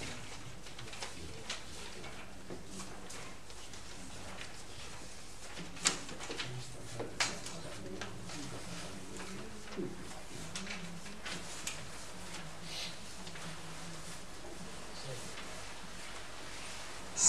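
A man speaks calmly into a microphone, heard through loudspeakers in an echoing room.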